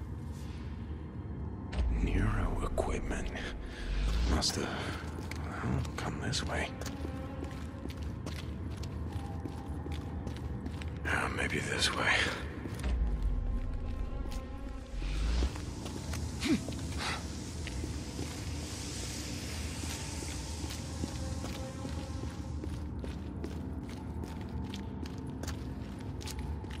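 Footsteps crunch on loose rock.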